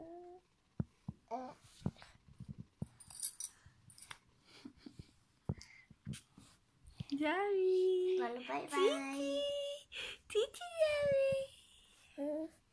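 A baby babbles and coos.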